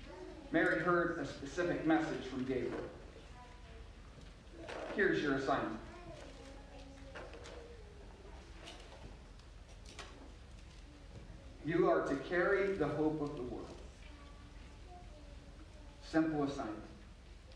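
A man speaks calmly into a microphone, with pauses, in a room with some echo.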